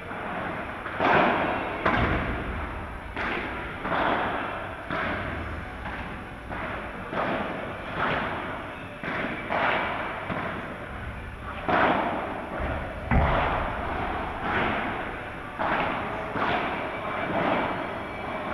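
The hits ring out in a large echoing hall.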